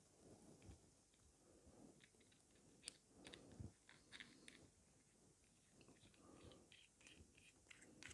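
Metal parts scrape softly as they are screwed together.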